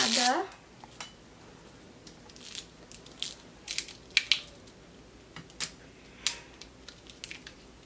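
Plastic crinkles and rustles as a toy egg is opened by hand.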